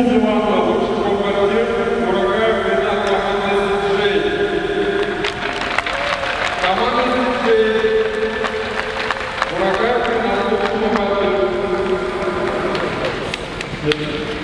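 A man speaks over a loudspeaker in a large echoing arena.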